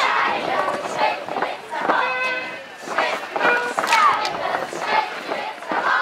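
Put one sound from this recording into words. Wooden clogs clatter and stamp on pavement.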